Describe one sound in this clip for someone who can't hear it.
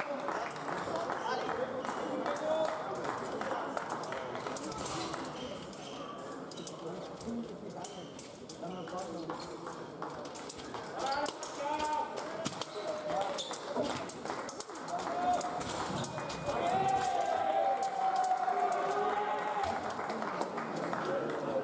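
Shoes squeak and tap on a hard floor.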